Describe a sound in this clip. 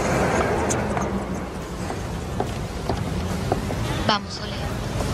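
High heels click on pavement.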